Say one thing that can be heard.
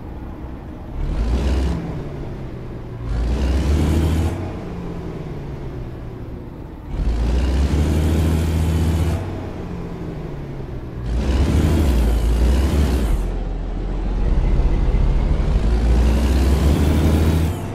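A truck engine revs up in loud bursts, again and again.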